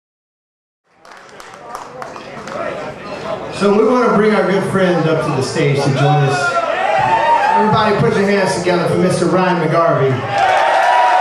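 An electric blues guitar plays through an amplifier in a large hall.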